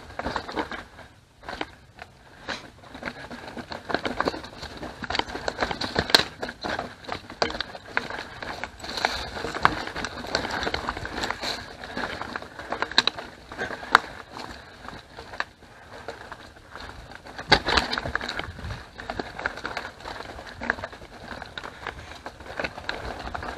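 Bicycle tyres roll over a rough dirt trail.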